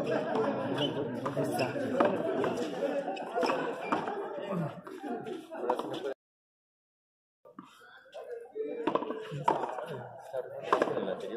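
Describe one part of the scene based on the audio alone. Sneakers scuff and squeak on a hard court.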